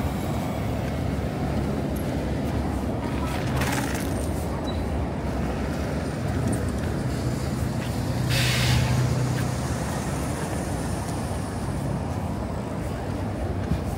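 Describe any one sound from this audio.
City traffic rumbles steadily outdoors.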